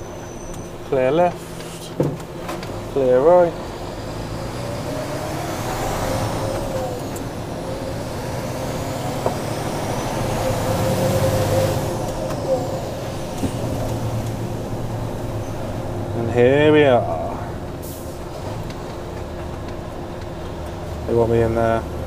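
A man speaks in short bursts close by.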